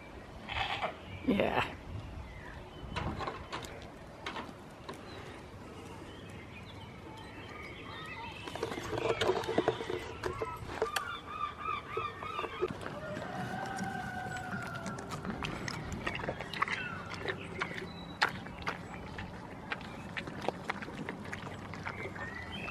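Goats bleat loudly nearby.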